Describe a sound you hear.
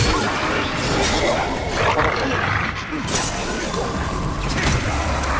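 A sword slashes and strikes creatures in a fight.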